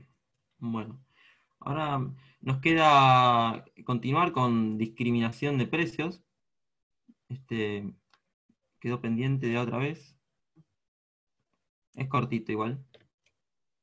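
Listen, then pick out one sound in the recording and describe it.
A young man speaks calmly through an online call, in short bursts with pauses.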